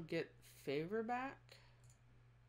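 A young woman speaks briefly and with animation into a microphone.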